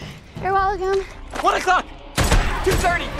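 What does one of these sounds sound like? A young woman speaks with urgency.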